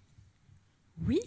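A woman starts speaking into a microphone.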